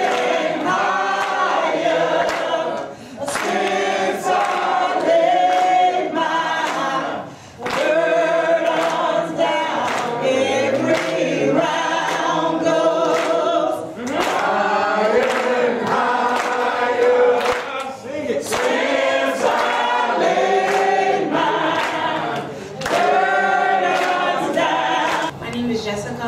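An elderly woman sings with feeling through a microphone and loudspeakers.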